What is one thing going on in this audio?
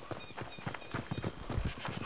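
Hooves clop on a dirt path.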